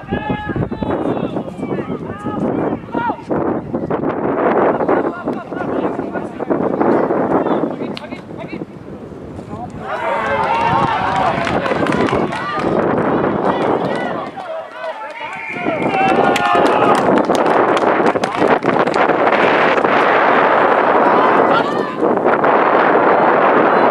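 Rugby players shout and call out to each other across an open field.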